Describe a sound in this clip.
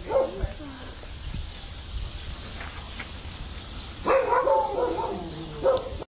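A dog whines close by.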